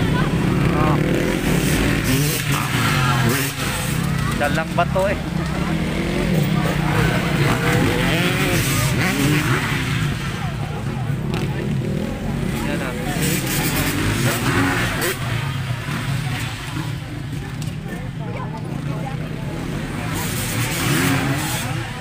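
A crowd of spectators chatters and calls out in the distance.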